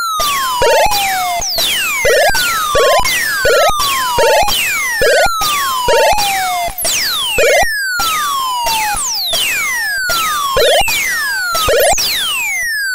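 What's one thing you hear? A video game plays synthesized laser shots that sweep down in pitch.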